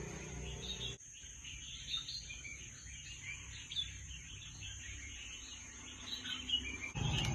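A bird's song plays from a small phone speaker.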